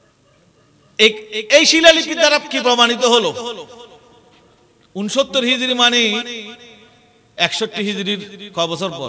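A man preaches loudly and passionately into a microphone, heard through loudspeakers.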